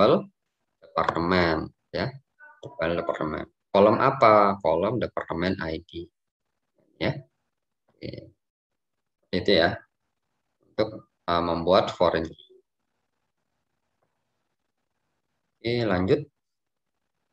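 A young man explains calmly over an online call, in bursts with pauses.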